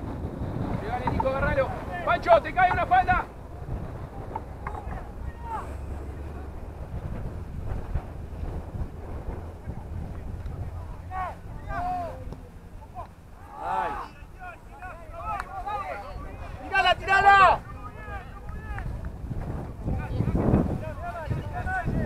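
A man on the sideline shouts loudly outdoors.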